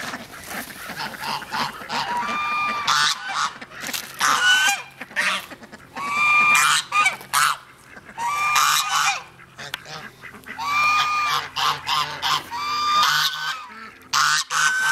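Many ducks quack loudly and repeatedly close by, outdoors.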